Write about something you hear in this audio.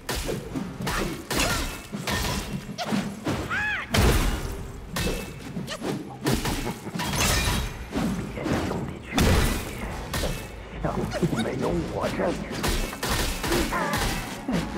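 Sword blows clash and slash against a huge creature again and again.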